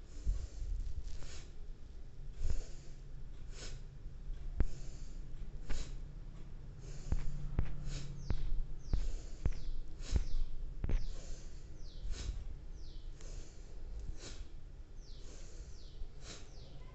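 A woman breathes deeply and slowly, close by.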